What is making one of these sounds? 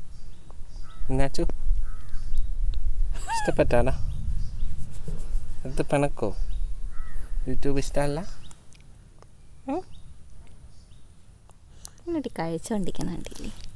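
A small child speaks in short bursts into a microphone.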